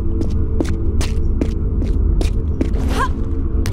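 Quick footsteps patter on stone.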